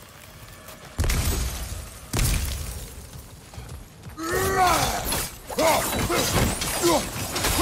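An axe strikes with heavy thuds.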